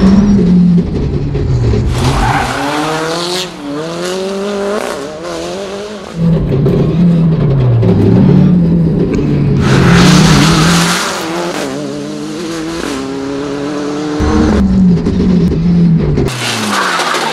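A rally car engine revs hard and shifts gears as it passes at speed.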